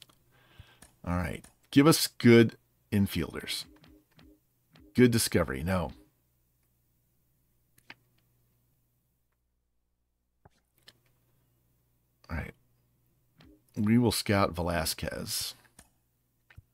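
A man talks calmly and closely into a microphone, in short bursts.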